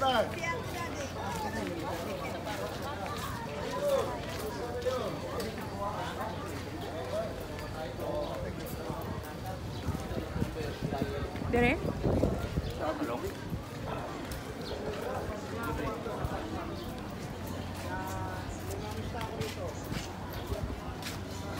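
Footsteps scuff along a paved road.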